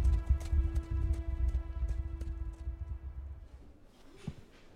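A horse's hooves pound on the ground.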